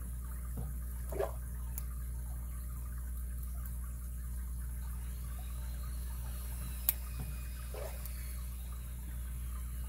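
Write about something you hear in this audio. Metal picks scrape and click softly inside a small lock.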